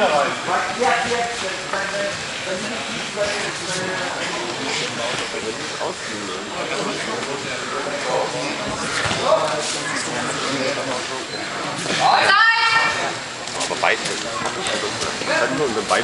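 Wrestlers thud and scuffle on a mat.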